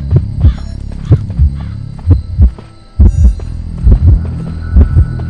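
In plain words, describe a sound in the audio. Quick footsteps thud heavily on a hard floor.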